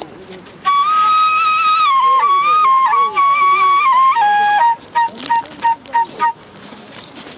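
A man plays a shrill tune on a whistle flute, close by.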